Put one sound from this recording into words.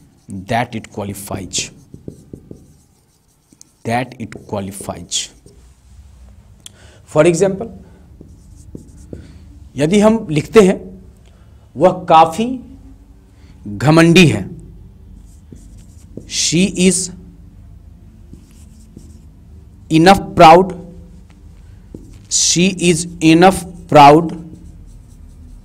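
A man speaks in short phrases, close by, in a calm lecturing manner.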